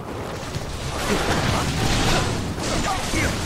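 Explosions burst with loud booms.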